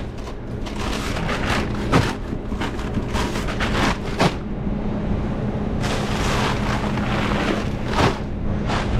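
Paper bags rustle and crinkle as hands stuff them into a cardboard box.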